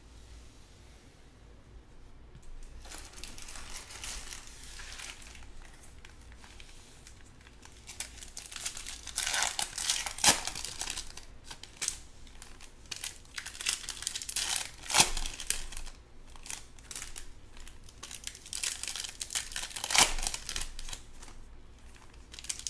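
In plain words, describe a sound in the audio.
Stacks of cards shuffle and tap on a table.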